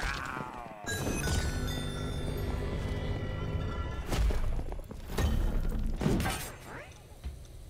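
A short triumphant jingle plays.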